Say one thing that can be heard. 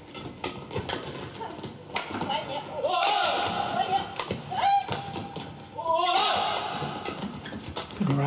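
A racket hits a shuttlecock with sharp, quick pops in an echoing hall.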